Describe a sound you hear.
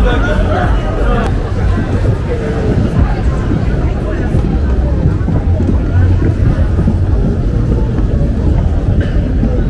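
A crowd of people chatter all around on a busy street.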